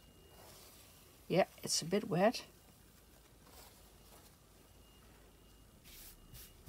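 Thin paper rustles softly as it is handled.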